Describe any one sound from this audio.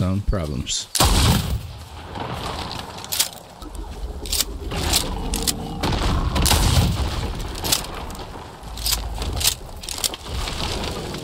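A gun fires repeated sharp shots.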